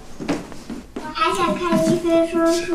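A little girl answers in a high, eager voice.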